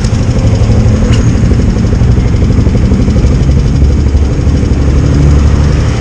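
A motorcycle engine roars loudly up close.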